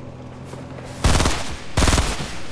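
A rifle fires loudly.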